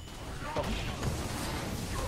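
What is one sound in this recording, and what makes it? A fiery blast bursts and roars.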